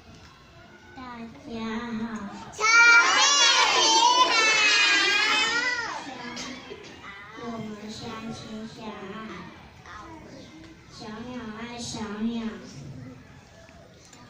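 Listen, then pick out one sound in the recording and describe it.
A young girl speaks into a microphone, heard loudly through a loudspeaker.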